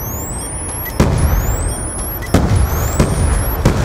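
A loud blast goes off, followed by sharp bangs.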